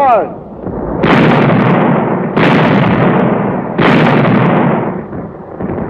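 Artillery guns fire with loud, heavy booms.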